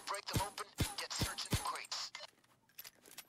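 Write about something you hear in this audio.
Sparks crackle as a lock is forced.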